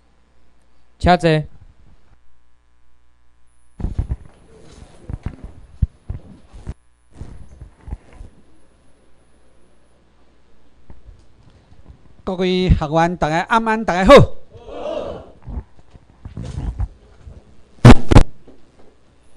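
A man speaks into a microphone, heard over loudspeakers in a large room.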